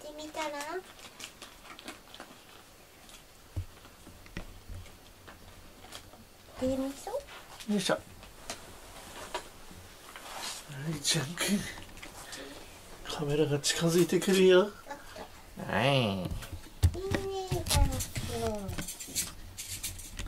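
A cat meows softly several times, close by.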